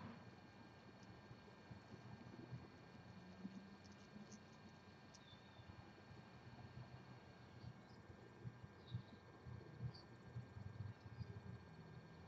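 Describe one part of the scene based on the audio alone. Tiny nestlings peep faintly.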